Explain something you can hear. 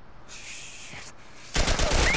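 A man swears under his breath.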